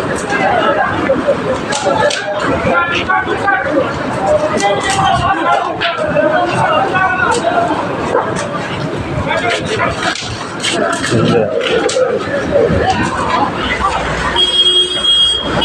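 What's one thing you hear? A large fire crackles and roars.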